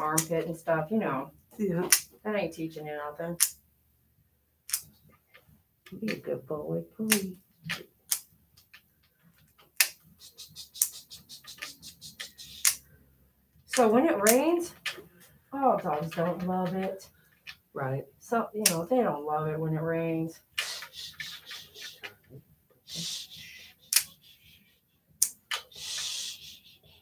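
Nail clippers snip a dog's claws with sharp clicks.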